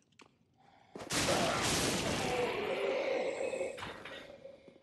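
A blade swings and clashes in a fight.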